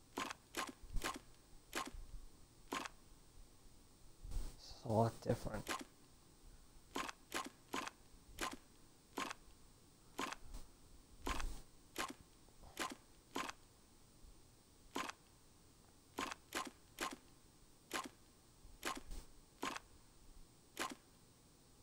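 Short clicks sound again and again as puzzle tiles turn.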